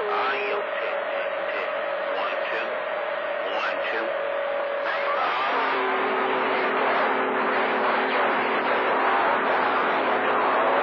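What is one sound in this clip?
Steady whistling tones sound through a radio receiver's static, changing pitch partway through.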